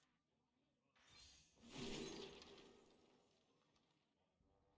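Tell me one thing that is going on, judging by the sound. A shimmering magical whoosh swells up and slowly fades.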